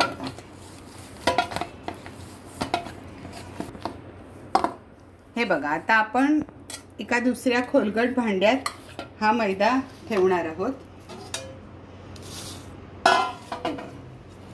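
Soft dough squishes and slaps as hands knead it in a metal bowl.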